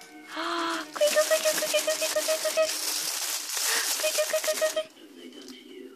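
Foil crinkles and rustles loudly as a hand scrunches it.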